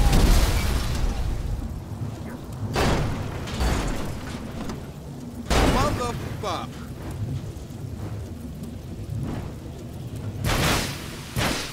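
Flames crackle and roar on a burning car.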